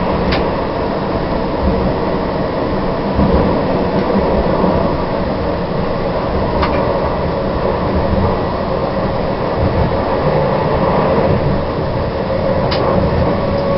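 Steel wheels clack over rail joints.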